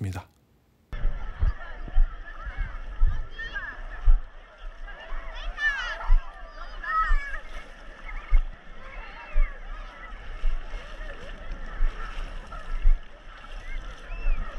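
Seawater laps and splashes close by.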